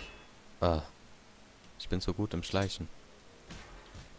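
A metal sword slides into its sheath.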